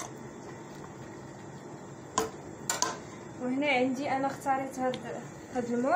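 A whisk stirs and clinks against a metal pot.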